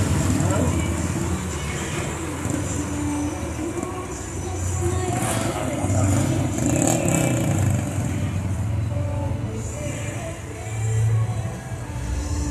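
A truck engine rumbles loudly as the truck rolls past.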